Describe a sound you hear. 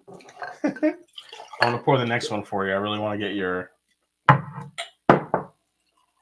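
Liquid pours into a glass.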